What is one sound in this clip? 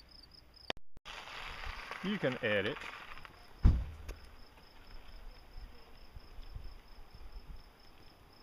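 A bicycle rolls past close by on gravel and fades away.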